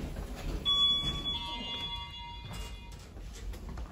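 An elevator chime rings with a bright ding.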